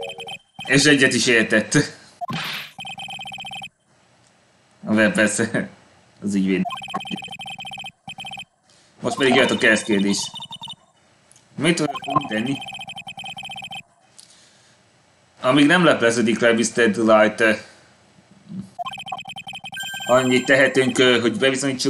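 A young man reads aloud with animation, close to a microphone.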